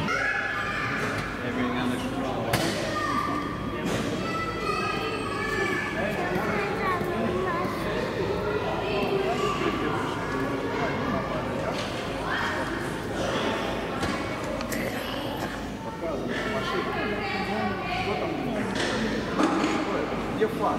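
A man talks nearby in an echoing hall.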